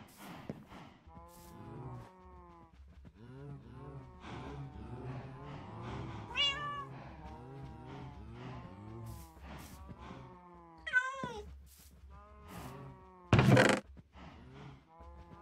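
Cows moo repeatedly nearby.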